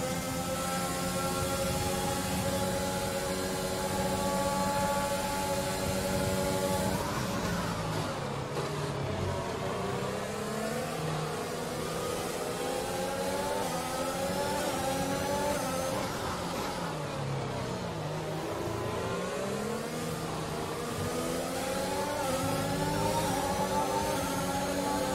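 A racing car engine screams at high revs, dropping in pitch when braking and climbing again as it speeds up.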